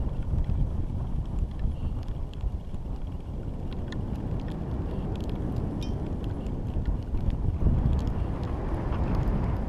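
Wind rumbles and buffets steadily outdoors.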